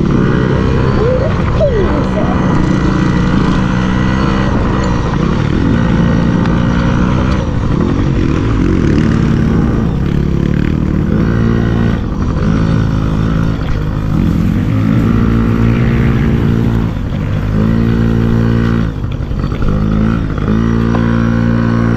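A dirt bike engine buzzes up close, revving up and down as the bike rides.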